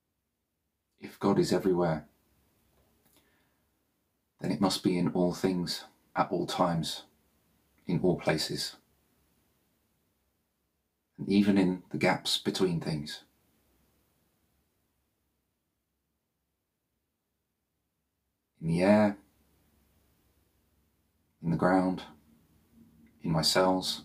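A man speaks slowly and calmly close to a microphone, with long pauses.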